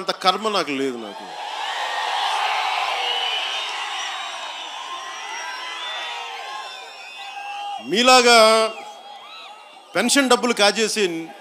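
A man speaks forcefully into a microphone over loudspeakers, outdoors.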